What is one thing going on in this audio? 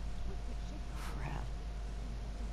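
A sheet of paper rustles briefly as it is handled.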